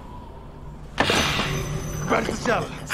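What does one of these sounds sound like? A man shouts in anguish nearby.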